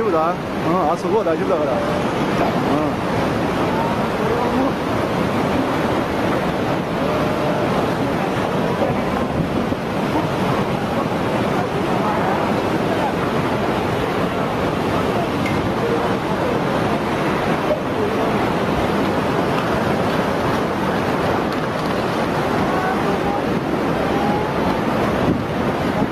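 Heavy rain lashes down.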